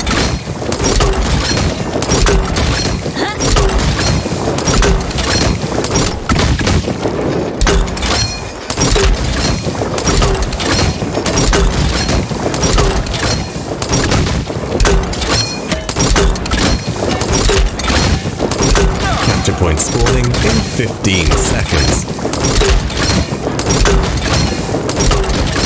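Gunfire from a game weapon rattles in rapid bursts.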